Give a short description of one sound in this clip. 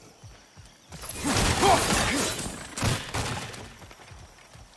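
An axe swings and smashes wooden barrels.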